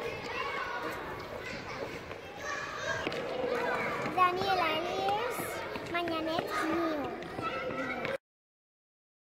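A young girl speaks into a microphone, close up.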